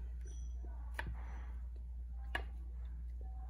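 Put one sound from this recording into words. A metal hair clip clicks softly.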